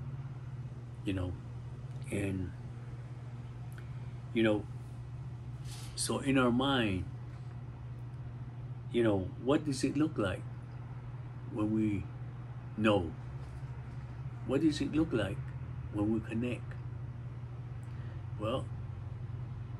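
An elderly man speaks calmly in short phrases close to the microphone.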